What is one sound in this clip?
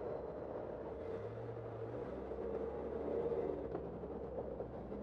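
A large bus engine idles and hums nearby.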